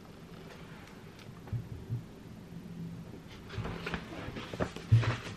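Glossy paper pages rustle and flap as they are handled close by.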